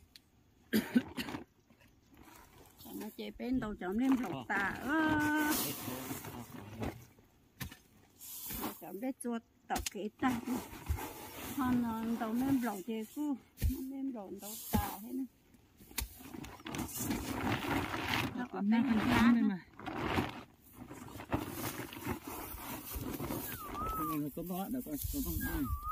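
Plastic sacks rustle and crinkle as a woman handles them.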